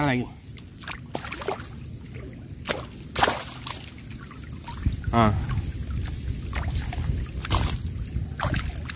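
Water splashes and sloshes as a net is dragged through shallow water.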